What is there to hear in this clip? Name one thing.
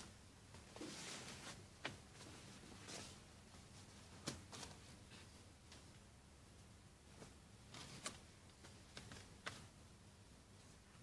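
Fabric rustles as clothes are handled and laid down.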